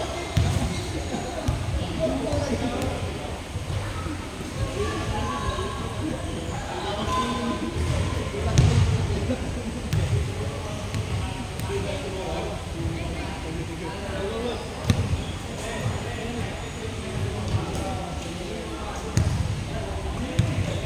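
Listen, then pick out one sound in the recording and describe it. A group of people chatter and laugh across a large echoing hall.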